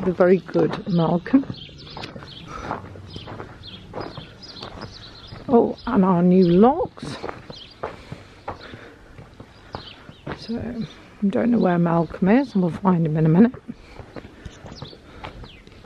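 A dog's paws patter softly on gravel.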